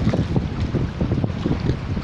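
Water splashes as a pole dips into it.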